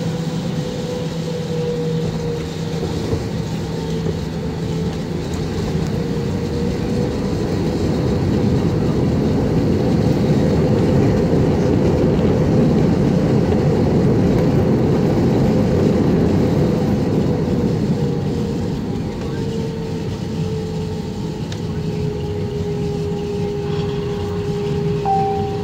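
Tyres rumble on a runway as a plane taxis.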